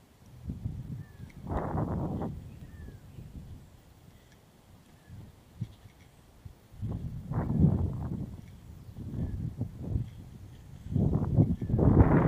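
Wind gusts buffet loudly outdoors.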